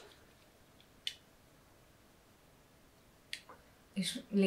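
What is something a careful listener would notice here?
Wire cutters snip through a cord with a sharp click.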